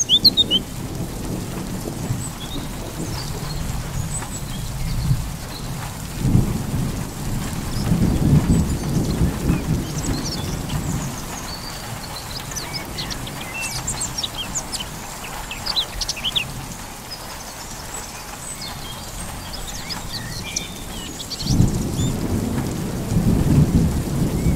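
Wind gusts and rumbles outdoors in bursts.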